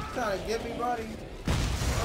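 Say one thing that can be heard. A futuristic gun fires with a sharp blast.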